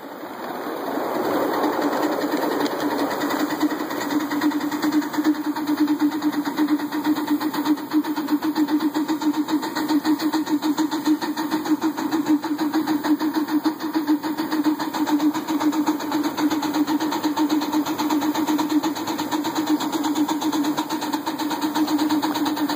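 Metal wheels clatter over rail joints.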